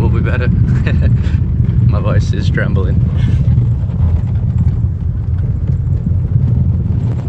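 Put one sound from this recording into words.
A car engine rumbles steadily inside the car.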